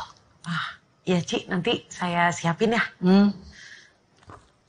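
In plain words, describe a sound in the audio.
A young woman laughs and speaks brightly.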